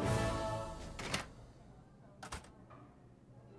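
Swinging doors bang open.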